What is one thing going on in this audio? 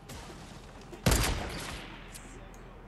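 A sniper rifle fires a single loud, echoing shot.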